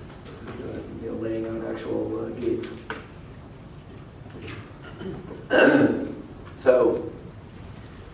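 A man speaks to an audience in a large echoing room.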